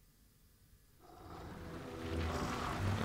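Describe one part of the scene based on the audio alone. A monster growls and snarls loudly.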